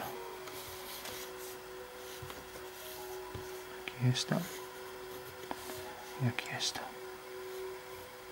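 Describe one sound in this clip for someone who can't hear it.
A plastic ruler slides and taps on paper.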